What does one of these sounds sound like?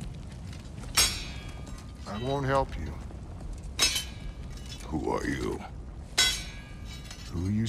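A hammer strikes metal with loud ringing clangs.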